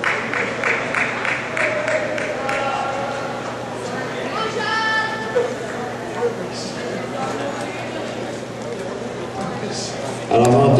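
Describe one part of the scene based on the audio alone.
Running footsteps patter quickly on an indoor track.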